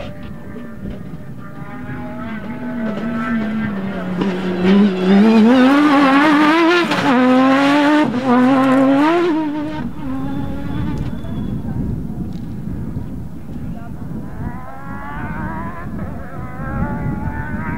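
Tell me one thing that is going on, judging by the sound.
A rally car engine roars and revs as the car speeds past.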